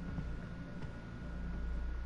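Footsteps climb a stairway.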